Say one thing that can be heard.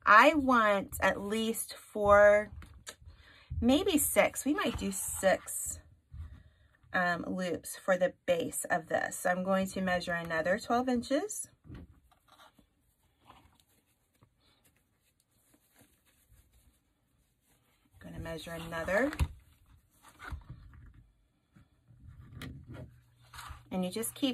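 Fabric ribbon rustles softly.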